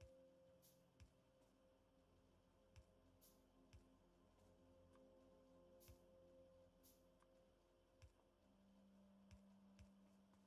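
Short clicks sound now and then.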